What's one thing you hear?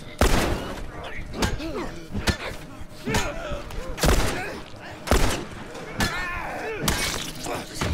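Gunshots ring out loudly with a short echo.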